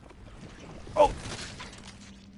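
A gunshot blasts.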